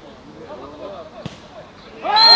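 A football is kicked with a dull thump.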